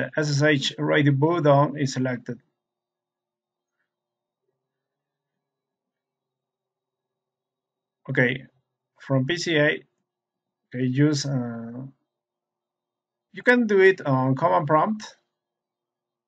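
A man speaks calmly and close into a microphone, with long pauses.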